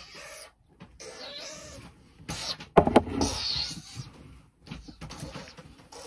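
A cardboard box rustles and bumps close by as it is handled.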